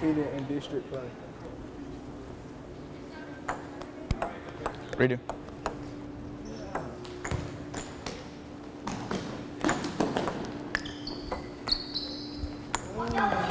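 A ping pong ball clicks back and forth on a table and paddles.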